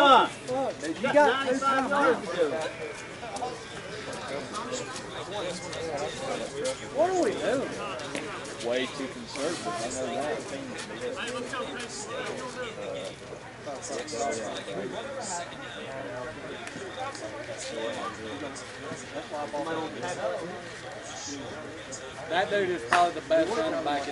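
Men talk and call out across an open field outdoors.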